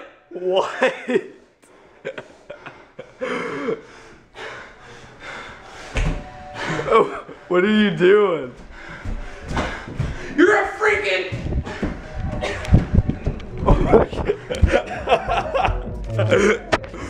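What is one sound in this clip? Bodies thump and scuffle on a hard floor.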